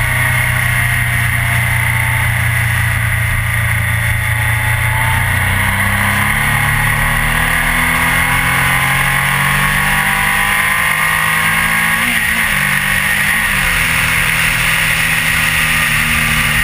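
A motorcycle engine hums steadily and shifts pitch as the rider changes speed.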